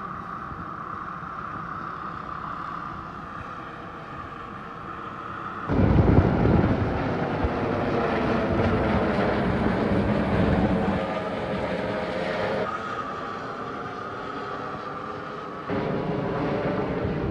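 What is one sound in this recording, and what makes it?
An air ambulance helicopter climbs away overhead, its rotor thudding.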